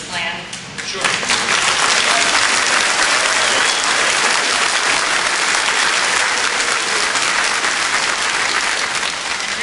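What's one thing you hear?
A large crowd applauds and cheers loudly.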